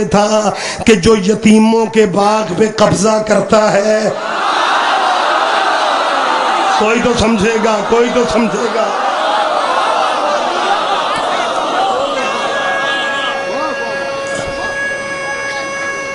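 A middle-aged man speaks forcefully through a microphone and loudspeakers.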